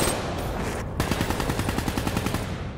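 A rifle fires.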